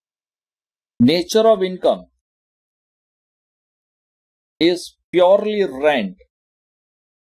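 A man speaks calmly and briefly into a close microphone.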